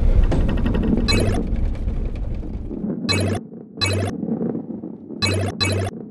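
Coins chime as they are collected.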